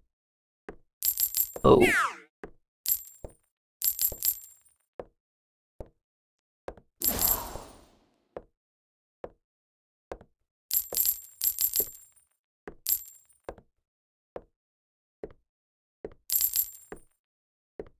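Bright cash-register chimes ring out in quick bursts.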